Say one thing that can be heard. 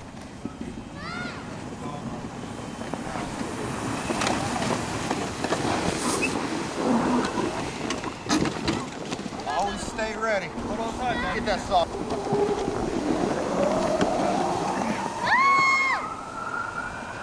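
Children shout and squeal excitedly outdoors.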